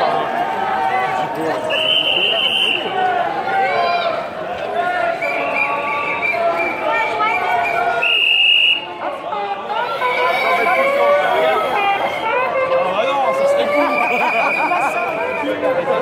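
A crowd of men and women chatter and call out all around outdoors.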